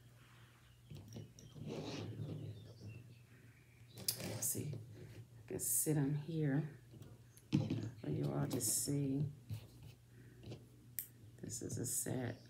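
Small metal cufflinks click and tap on a hard table.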